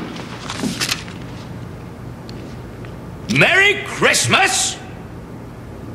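An elderly man speaks in a gruff voice.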